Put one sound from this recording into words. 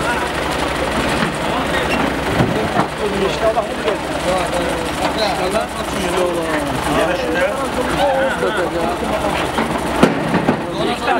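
A tractor engine idles with a low rumble.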